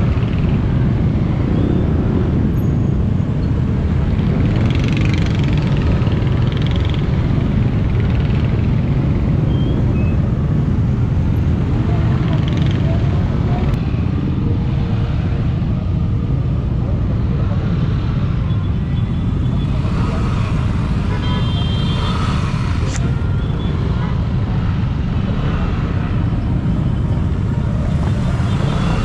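Wind buffets the microphone of a moving rider.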